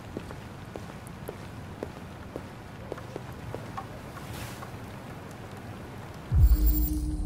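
Footsteps tread across an indoor floor.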